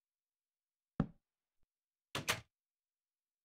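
Wooden pieces are set down with short knocks.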